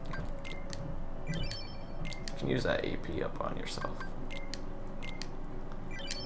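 Short electronic menu beeps chime several times.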